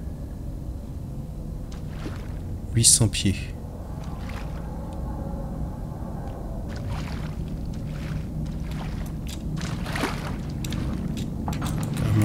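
Footsteps crunch slowly on dirt and gravel.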